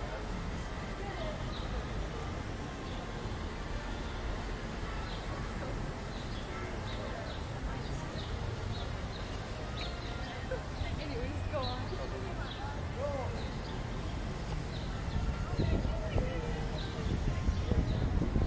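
A steady low hum of city traffic carries outdoors.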